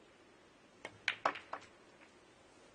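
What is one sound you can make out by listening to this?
Snooker balls clack against each other and knock into the cushions.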